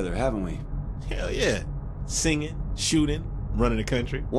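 A second man answers with animation, close by.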